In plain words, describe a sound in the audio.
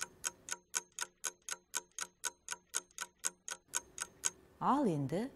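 A timer ticks quickly and evenly.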